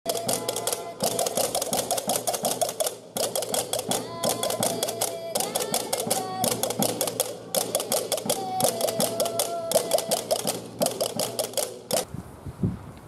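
A frame drum is beaten.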